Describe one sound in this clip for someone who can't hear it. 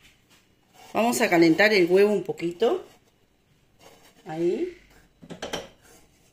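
A chocolate shell rubs softly against a metal pan.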